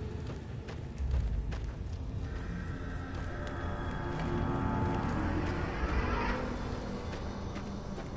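Footsteps crunch on dry ground at a run.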